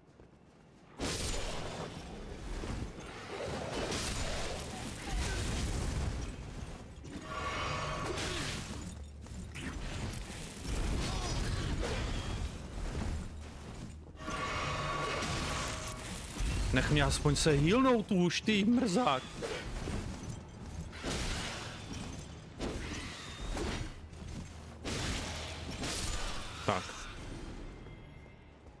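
Swords clash and slash in fast game combat.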